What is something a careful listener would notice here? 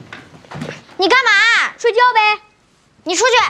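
A young girl speaks briefly.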